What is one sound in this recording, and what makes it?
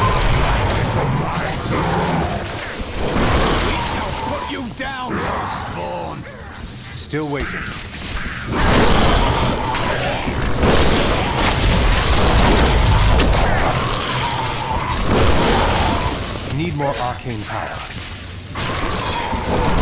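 Game spells crackle and boom.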